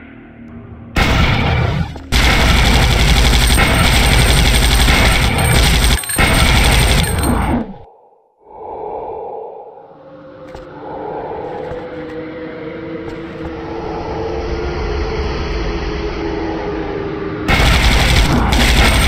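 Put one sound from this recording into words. Loud blasts and crackling explosions roar.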